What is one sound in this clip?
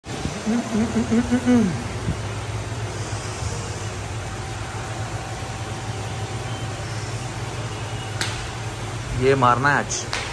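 A fan hums steadily.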